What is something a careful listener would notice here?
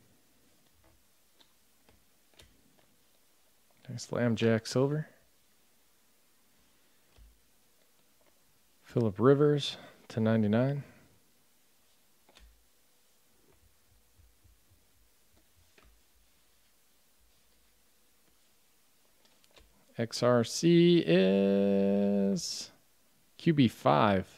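Trading cards rustle and slide softly against each other in hands.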